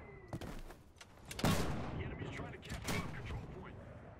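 A mortar fires with a loud thump.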